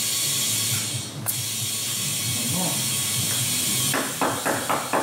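Compressed air hisses steadily into a tyre.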